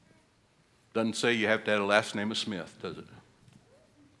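An elderly man speaks with feeling through a microphone.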